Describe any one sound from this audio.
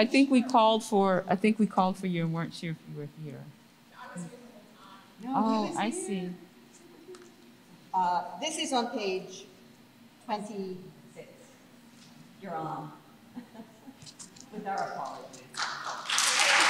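A woman reads aloud calmly into a microphone.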